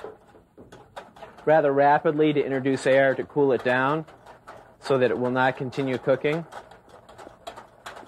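A whisk clatters against a metal pan.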